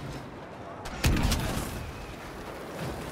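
An explosion booms with crackling sparks.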